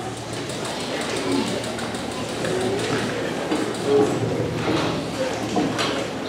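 A large school band plays wind instruments together in an echoing hall.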